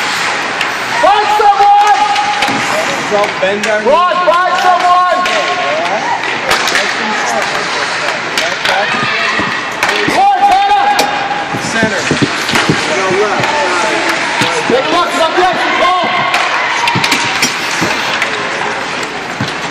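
Spectators shout and cheer in an echoing indoor rink.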